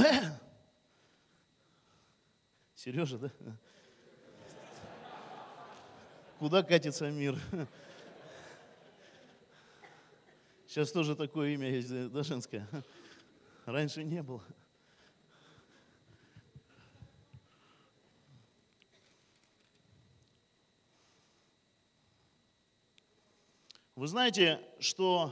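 A man speaks with animation into a microphone, heard through loudspeakers in a large echoing hall.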